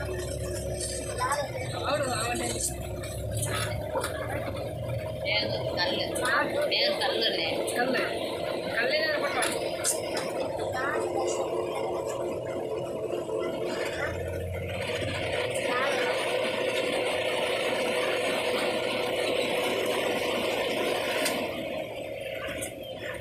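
Tyres roll steadily over smooth tarmac.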